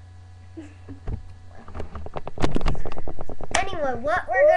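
A young boy makes quick clicking and popping sounds with his mouth close to a microphone.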